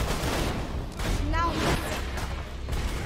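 A fireball explodes with a deep rumble.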